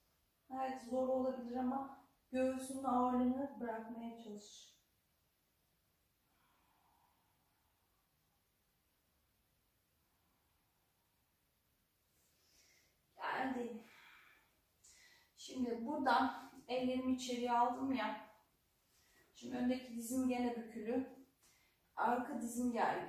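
A woman speaks calmly, giving instructions in short phrases.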